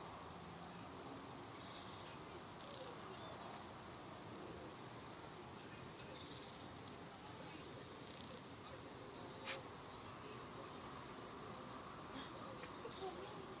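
A cat's paws rustle softly in the grass.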